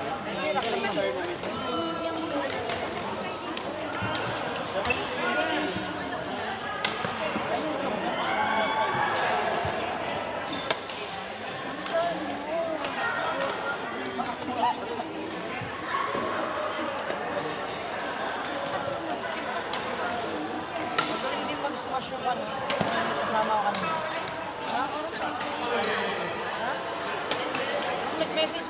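Shuttlecocks are struck with sharp pops of rackets throughout a large echoing hall.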